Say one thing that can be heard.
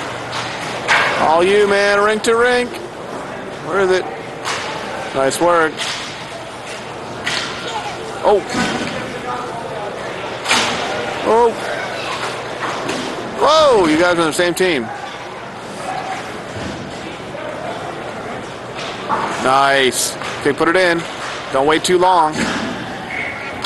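Men shout across a large echoing rink.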